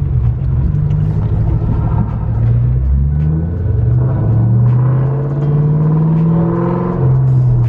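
A supercharger whines, rising in pitch.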